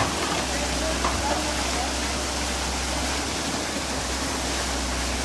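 An excavator's diesel engine rumbles steadily nearby.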